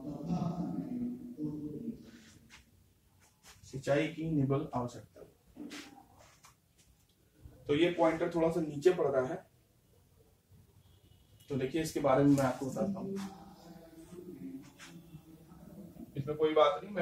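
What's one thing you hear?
A man lectures calmly in short bursts with pauses, close by.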